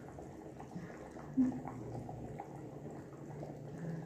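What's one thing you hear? Food plops into a pot.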